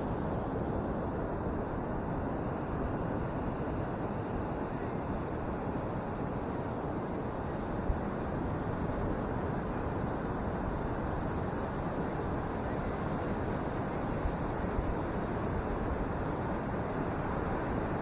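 Ocean waves roar and crash steadily onto the shore.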